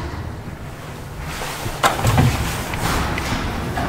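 Lift doors slide shut with a rattle and a thud.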